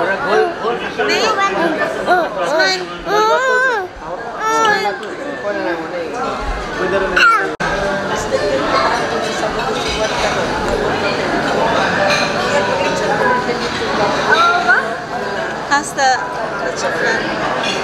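Many people chatter in the background of a busy room.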